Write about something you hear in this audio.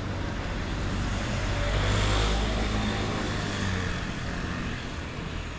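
A motorbike rides past on a nearby street.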